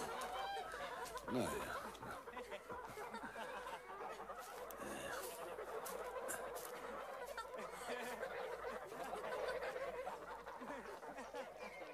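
Geese honk and cackle nearby.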